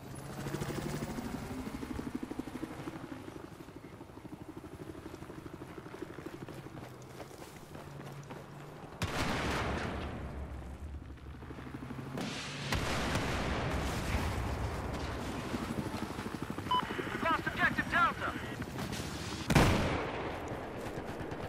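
Footsteps thud steadily on dirt and gravel.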